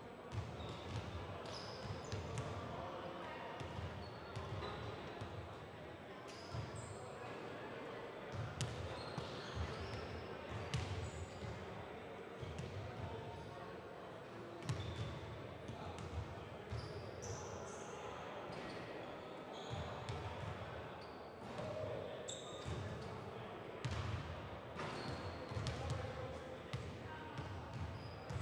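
A crowd of young men chatter in an echoing gym.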